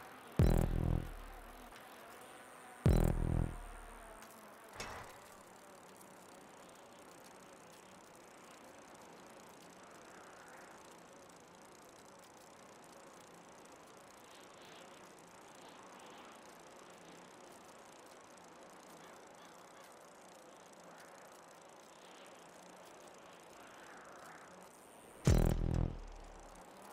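A bicycle lands with heavy thuds.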